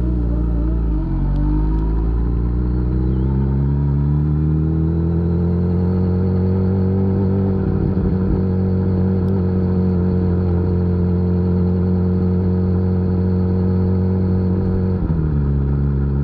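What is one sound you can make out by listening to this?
An inline-four superbike shifts up a gear, and its engine note briefly drops.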